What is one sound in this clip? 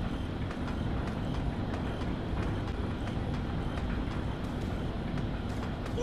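Boots clank on metal ladder rungs in a steady rhythm.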